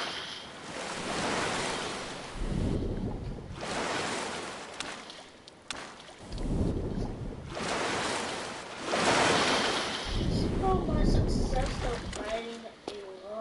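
Waves wash and surge in slow swells.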